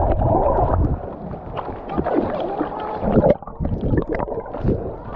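Water splashes against rocks.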